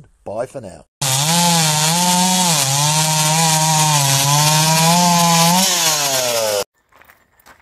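A chainsaw roars and revs as it cuts through wood.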